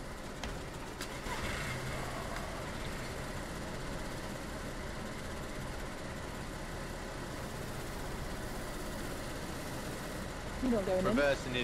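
A car engine hums low and steady as the car rolls slowly.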